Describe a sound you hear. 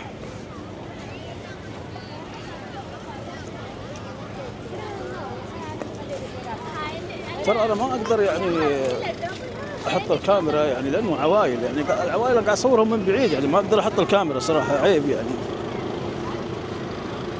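A crowd chatters outdoors throughout.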